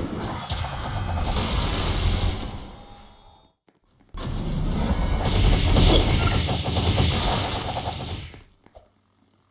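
Rapid punches thud and crackle in a fast barrage.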